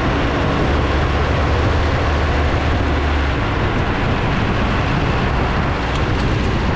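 Skateboard wheels roll steadily over asphalt.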